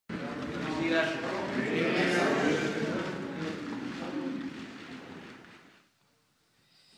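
A crowd of adults chatters and murmurs in a large echoing hall.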